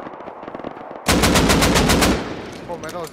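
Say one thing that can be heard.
Rifle shots fire in a loud, quick burst.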